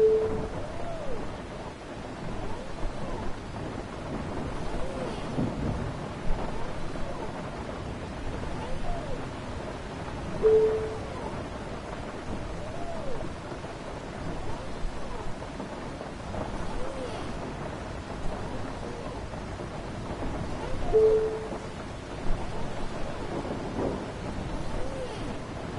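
Rain patters steadily on a bus windscreen.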